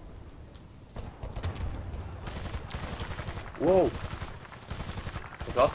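A machine gun fires in rapid bursts close by.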